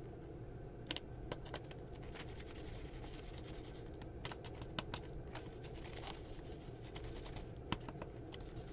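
Paper rustles and taps on a table.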